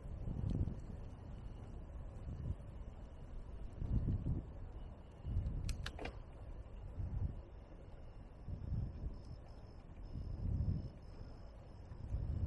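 Wind rumbles and buffets in low gusts outdoors.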